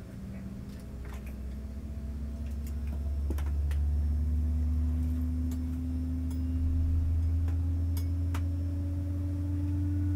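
A jet engine hums low and steady from inside a cabin, its whine slowly rising in pitch.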